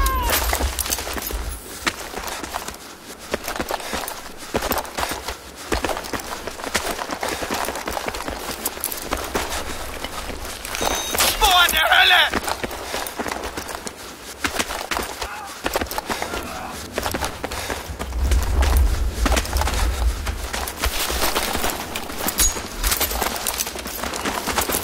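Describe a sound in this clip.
Footsteps crunch quickly over gravel and rubble.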